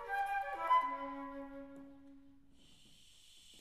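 A small woodwind ensemble plays a held chord that fades away in a large hall.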